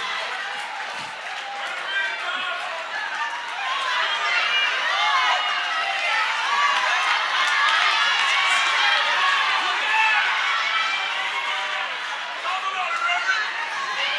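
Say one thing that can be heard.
A man preaches with animation through a microphone in a large hall.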